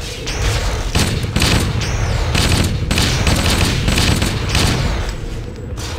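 A game assault rifle fires in rapid bursts.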